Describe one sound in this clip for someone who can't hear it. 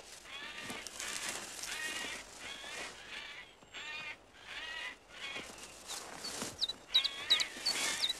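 A young ape whimpers and squeals in high, wavering cries close by.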